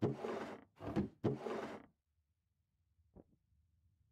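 A wooden barrel lid creaks open.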